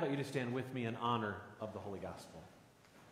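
A man speaks calmly into a microphone in a reverberant hall.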